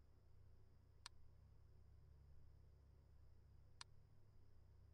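A short electronic click sounds each time the view switches.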